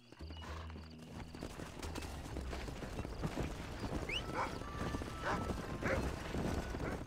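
A horse-drawn wagon rolls over dirt.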